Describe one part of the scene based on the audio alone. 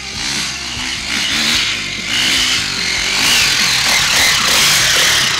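A dirt bike engine revs and roars as it climbs closer.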